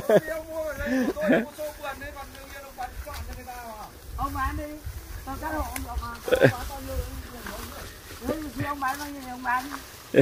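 Dry grass rustles under footsteps.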